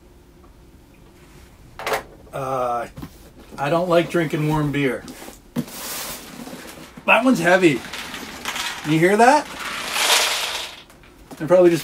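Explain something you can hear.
Packing tape rips off a cardboard box.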